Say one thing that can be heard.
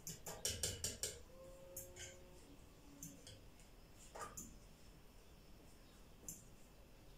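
A spoon clinks and scrapes against a bowl.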